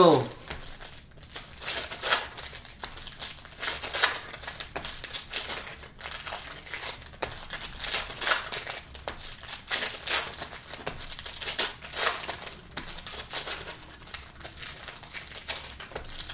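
Trading cards flick and rustle as they are sorted by hand, close up.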